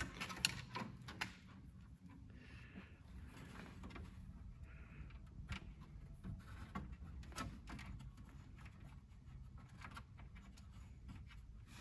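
Wires and small metal parts click and rattle under a man's hands.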